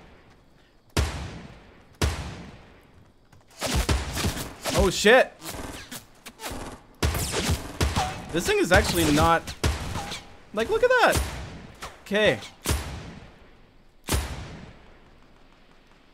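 Sniper rifle shots crack sharply and echo away.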